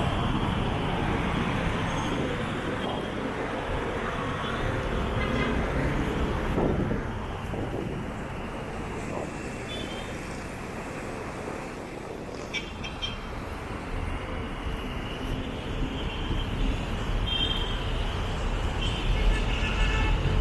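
City traffic rumbles steadily on a road below, outdoors in light wind.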